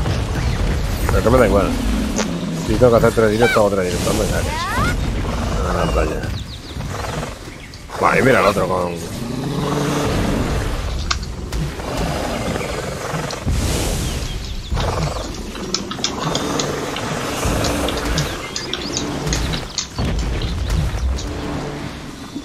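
Fantasy battle sound effects clash, whoosh and crackle throughout.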